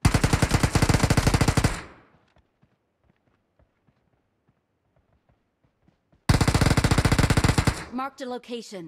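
A rapid burst of automatic gunfire rattles close by.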